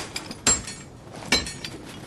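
A pickaxe swings through the air.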